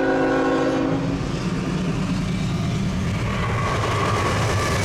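A diesel locomotive engine rumbles as it passes close by.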